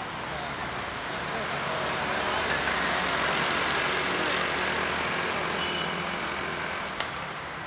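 A motor scooter passes.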